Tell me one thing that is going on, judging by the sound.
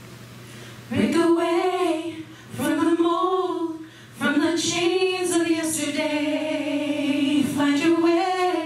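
Several women sing together into microphones, loud and close.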